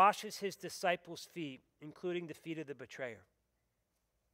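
A middle-aged man speaks calmly into a headset microphone.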